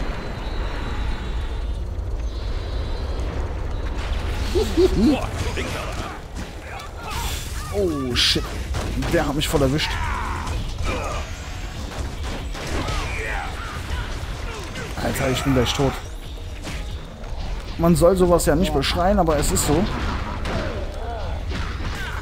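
Blows and electric zaps ring out in a fight.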